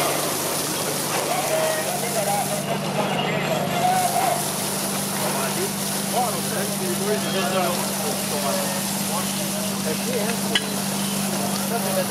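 Water sprays in a steady hiss from a hose stream.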